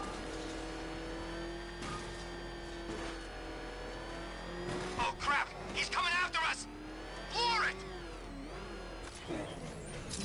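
A heavy vehicle engine roars and revs at speed.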